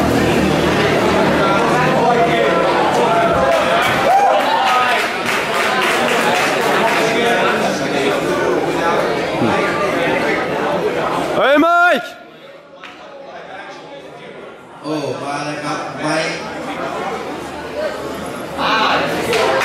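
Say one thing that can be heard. A crowd chatters and murmurs nearby.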